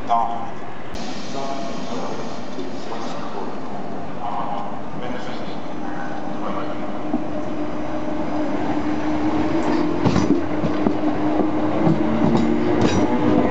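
A train rolls in and slows along the tracks.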